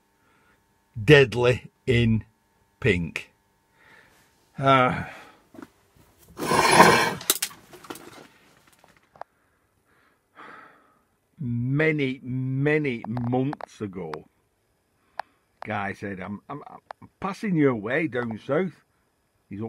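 A middle-aged man talks calmly, close to the microphone.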